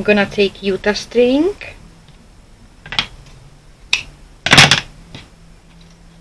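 Twine rustles softly as hands handle it.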